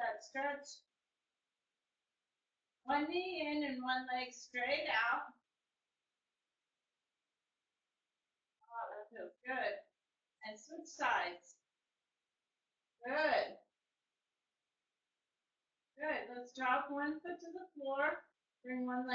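A woman speaks calmly close by, in short bursts with pauses.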